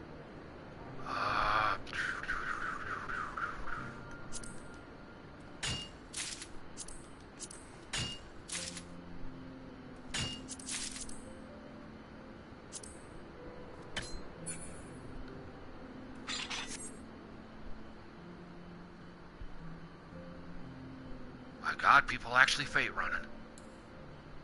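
Short game chimes and clicks ring out now and then.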